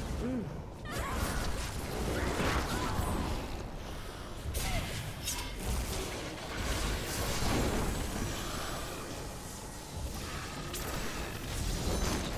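Magic blasts crackle and boom in a fight.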